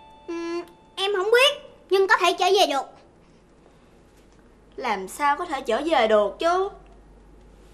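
A young girl speaks with animation, close by.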